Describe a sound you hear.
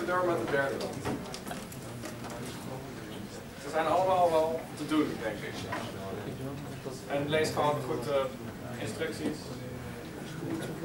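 A young man speaks calmly to an audience in a room with a slight echo.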